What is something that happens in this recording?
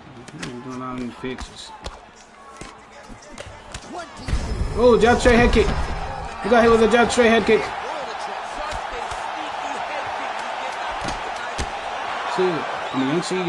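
Punches thud and slap against bodies.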